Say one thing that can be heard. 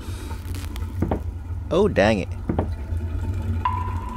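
A small cabinet door creaks open.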